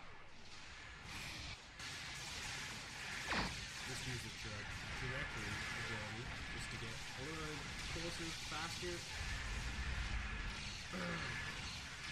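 A large explosion booms.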